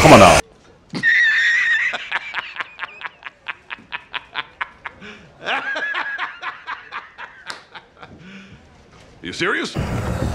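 A man laughs loudly in rhythmic bursts.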